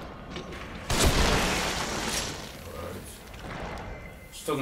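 A wooden crate smashes apart.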